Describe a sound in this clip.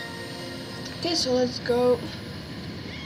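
A short bright chime jingle plays.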